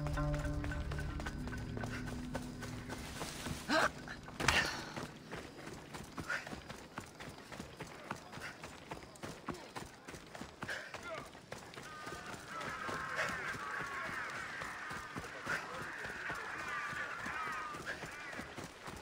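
Footsteps run quickly over gravel and stone.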